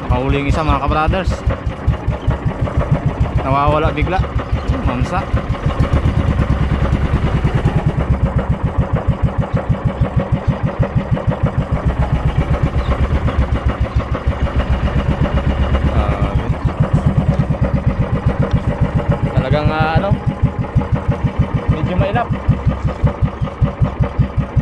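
A boat engine putters steadily and fast close by.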